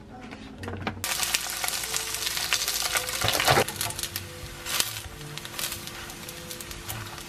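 Dumplings sizzle loudly in hot oil in a frying pan.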